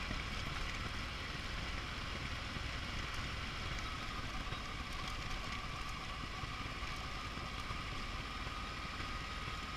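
Wind rushes loudly over a helmet microphone.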